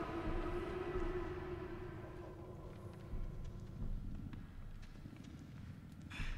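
Footsteps thud softly on wooden boards.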